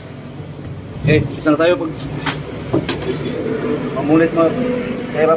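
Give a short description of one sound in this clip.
A man talks nearby.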